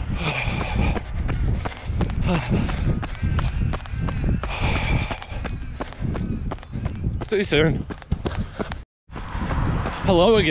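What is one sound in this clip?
A man talks breathlessly and close up.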